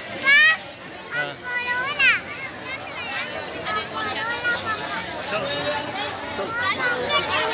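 A crowd of men talk and call out close by outdoors.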